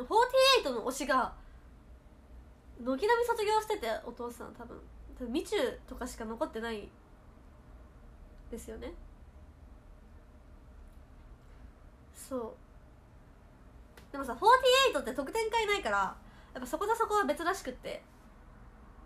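A young woman talks to a microphone close by in a lively, chatty voice, with pauses.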